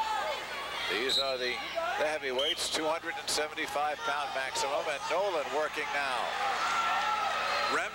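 Shoes squeak sharply on a wrestling mat.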